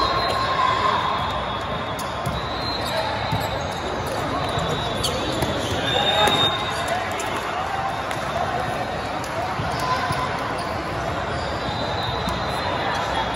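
Players' shoes squeak sharply on the court.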